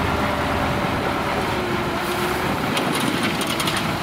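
A dump truck's bed whines as it tips up.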